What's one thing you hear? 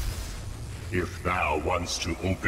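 A cartoon monster growls loudly in a deep voice.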